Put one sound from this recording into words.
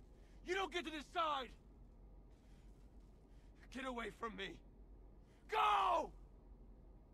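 A young man shouts angrily, close by.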